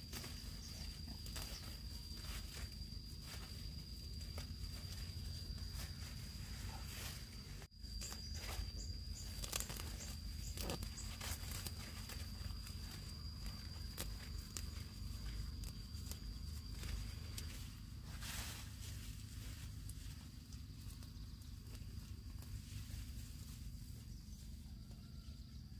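Leaves rustle as a person pushes through dense plants.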